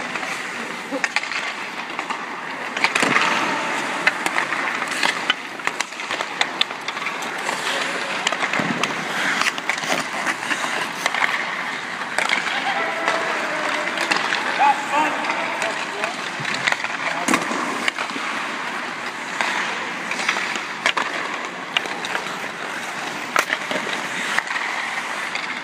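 Skates scrape and carve across ice in a large echoing arena.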